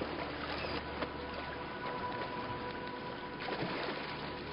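Waves lap on open water.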